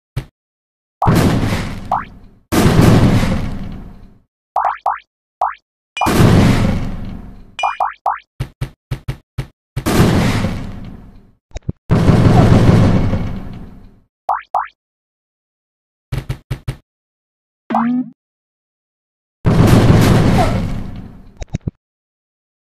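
Game bombs explode with loud booms, one after another.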